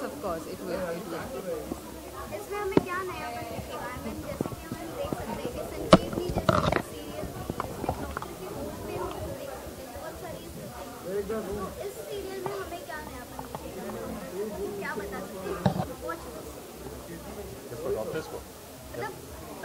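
A young woman speaks calmly into microphones close by.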